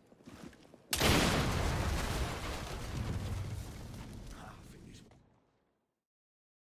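A loud explosion booms and rumbles, then slowly fades.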